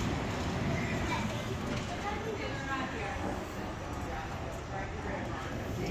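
Several people murmur faintly in the distance.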